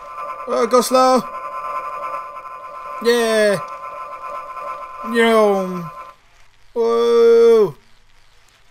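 A young man yells and groans loudly into a close microphone in short bursts.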